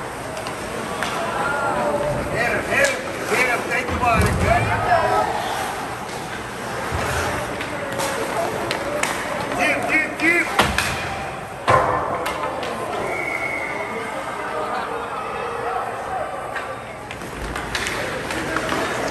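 Hockey sticks click and clatter against the puck and ice.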